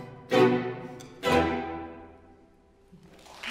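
A string quartet plays loud closing chords that ring out in a concert hall.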